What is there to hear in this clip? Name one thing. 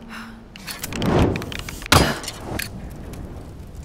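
A flaming arrow strikes and fire bursts with a whoosh.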